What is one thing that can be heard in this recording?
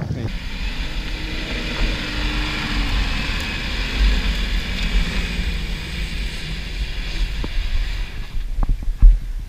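A truck engine revs hard, climbing in sand.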